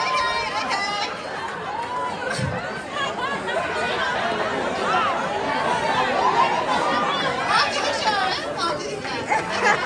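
A woman sings into a microphone, amplified through loudspeakers in a large, echoing hall.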